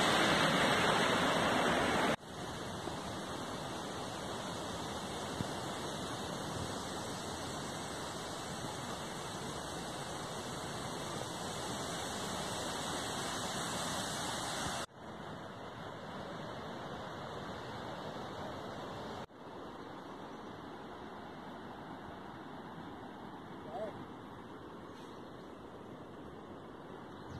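Wind rushes steadily through trees outdoors.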